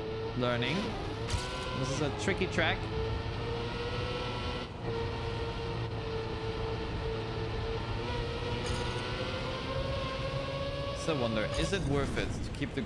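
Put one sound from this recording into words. A racing car engine hums at a steady, high pitch.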